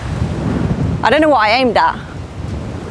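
A young woman calls out loudly nearby.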